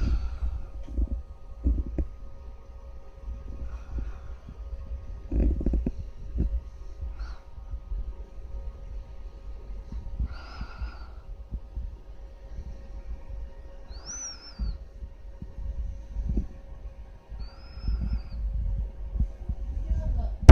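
Cooling fans hum steadily.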